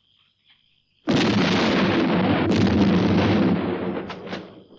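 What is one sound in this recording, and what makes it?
An explosion booms loudly and rumbles on.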